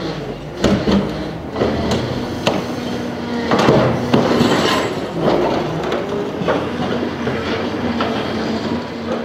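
Scrap metal clanks and scrapes as a heavy grab digs into it.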